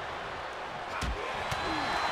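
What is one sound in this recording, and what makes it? A punch lands with a sharp smack.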